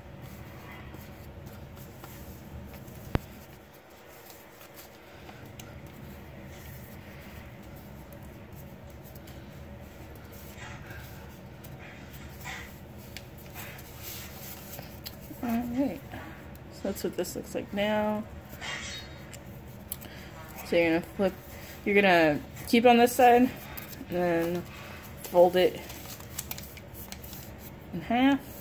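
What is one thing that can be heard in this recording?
Paper crinkles and rustles as it is folded by hand.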